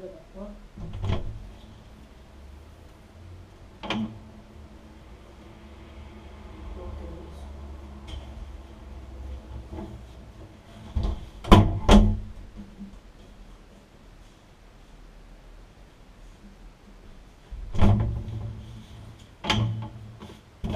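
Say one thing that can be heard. A door clicks open.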